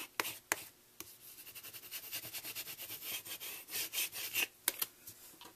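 A rubber block scrubs quickly back and forth over paper.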